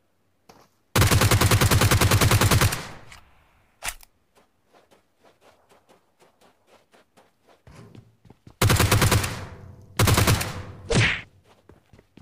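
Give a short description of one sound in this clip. Rapid gunfire bursts loudly and close.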